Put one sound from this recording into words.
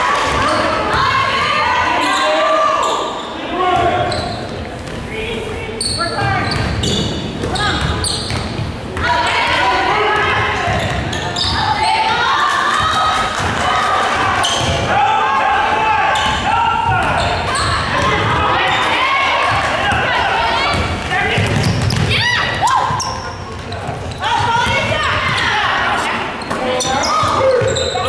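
Teenage girls call out and talk loudly in a large echoing gym.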